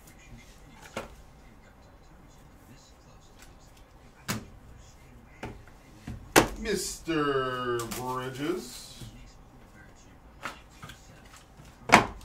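Plastic card cases click and tap as they are handled.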